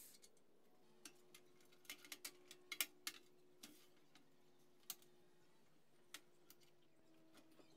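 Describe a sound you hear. Metal parts clank and click as a blade is clamped in a vise.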